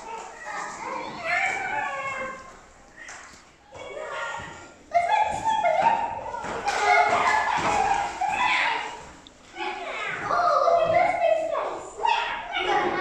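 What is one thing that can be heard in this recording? Young children shout and squeal playfully nearby.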